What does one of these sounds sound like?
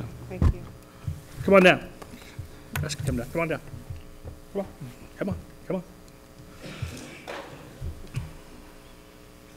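A man speaks over a microphone from a table farther away.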